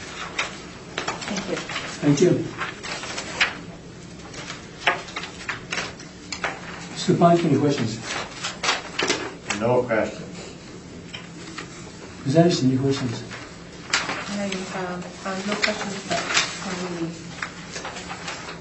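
Adults speak in turns in a small room, heard through a distant microphone.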